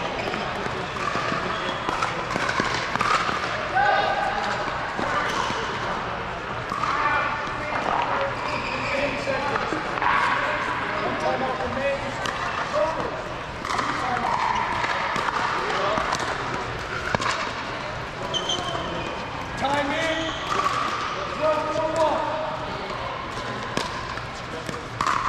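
Several men and women talk and call out across a large echoing hall.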